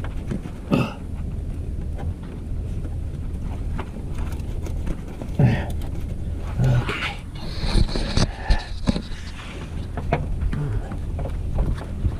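Hoses and cables rustle and knock as a hand moves them.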